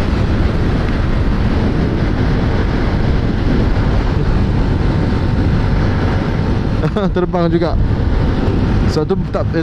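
A scooter engine hums steadily.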